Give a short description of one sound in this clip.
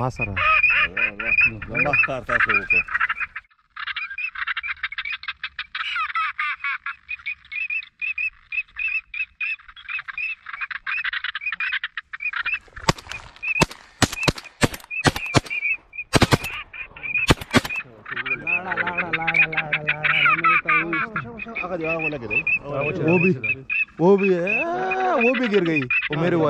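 A flock of ducks quacks and chatters.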